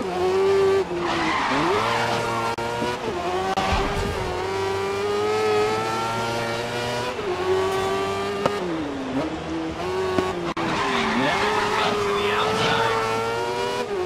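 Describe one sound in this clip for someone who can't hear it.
Tyres screech through tight corners.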